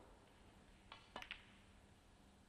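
A snooker cue strikes the cue ball with a sharp click.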